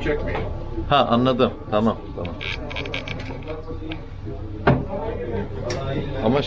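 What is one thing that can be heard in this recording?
A crowd of men chatters in the background.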